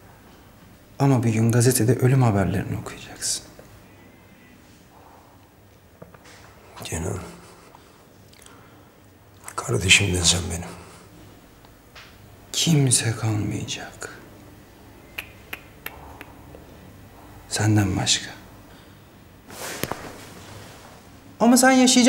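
A man speaks quietly and tensely, close by, with long pauses.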